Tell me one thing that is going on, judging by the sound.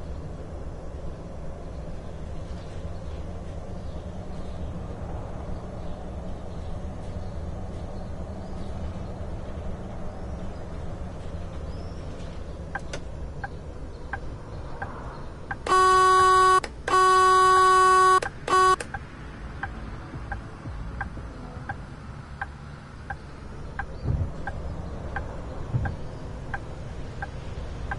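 A bus engine hums low and steadily as the bus drives.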